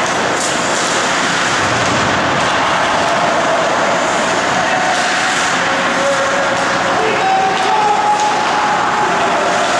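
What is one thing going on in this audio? Skates scrape and carve across ice in a large echoing rink.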